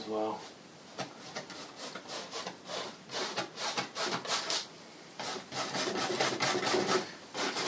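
A paintbrush scrubs and swishes against canvas.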